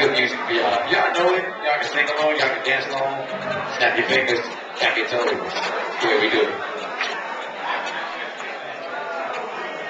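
A trumpet plays.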